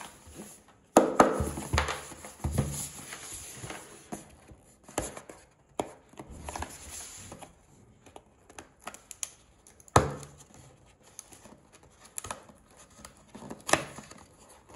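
A cardboard flap clicks and taps as it is pried open.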